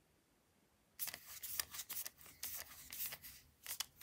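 A small screwdriver turns a screw with faint clicks.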